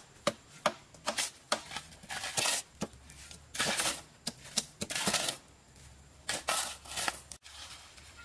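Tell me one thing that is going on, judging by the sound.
A hoe chops into dry soil.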